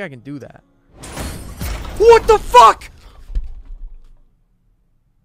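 A young man shouts and cheers loudly into a microphone.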